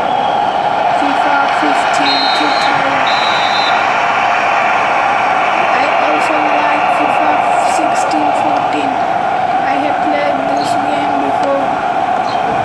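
A young boy talks quietly close by.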